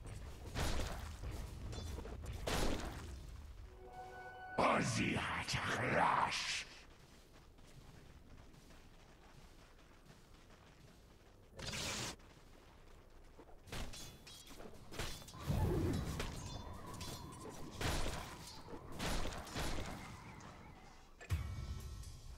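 Game combat hits clash sharply.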